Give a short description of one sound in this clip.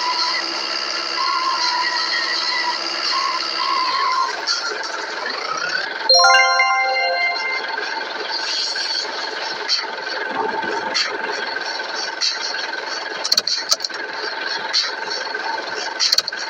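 A car engine hums steadily as a vehicle drives slowly.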